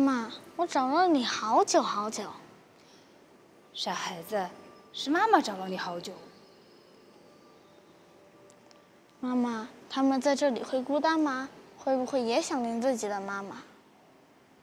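A boy speaks softly and close by.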